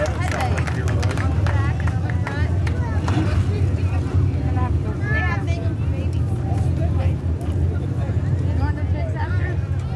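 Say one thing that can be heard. Men talk nearby over the engine noise.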